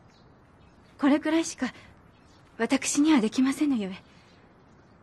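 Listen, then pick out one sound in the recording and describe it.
A young woman speaks softly and gently nearby.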